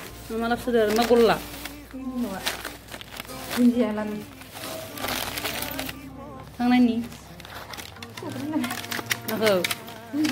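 A plastic bag rustles and crinkles as hands handle it.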